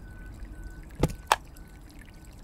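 A switch clicks twice.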